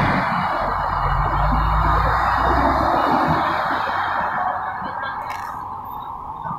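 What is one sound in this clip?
Motor traffic rumbles steadily nearby, then fades away.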